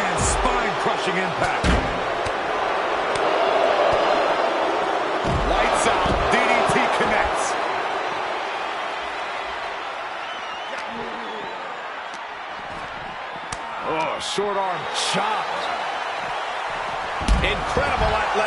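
Heavy bodies slam onto a ring mat with loud thuds.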